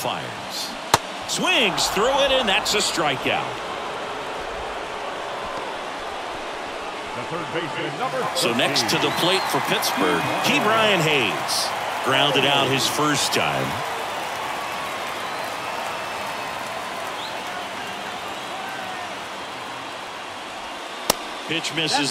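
A ball smacks into a catcher's mitt with a sharp pop.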